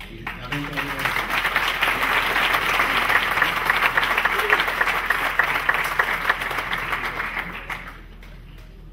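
An audience applauds loudly in a large room.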